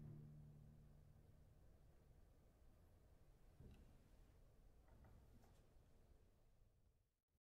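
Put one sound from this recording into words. A double bass is plucked, its deep notes ringing out and fading.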